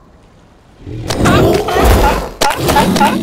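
A seal squeals in alarm.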